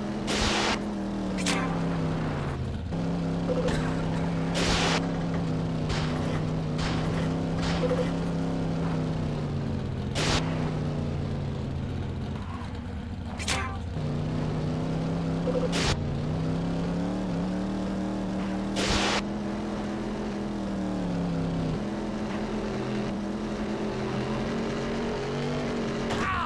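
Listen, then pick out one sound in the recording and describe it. A race car engine hums steadily, rising and falling in pitch as it speeds up and slows.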